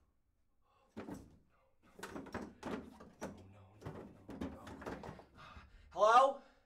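A young man speaks with animation in a small echoing room.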